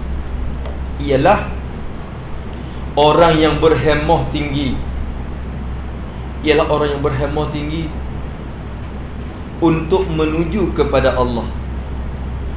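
A man chants slowly in short, drawn-out phrases.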